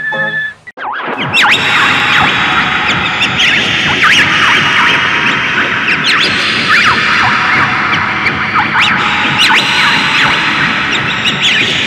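Someone whistles a bouncy tune.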